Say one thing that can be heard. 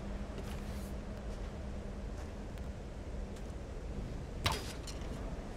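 A bowstring creaks as it is drawn.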